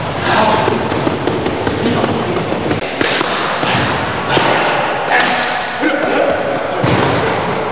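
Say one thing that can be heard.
Punches smack against padded mitts.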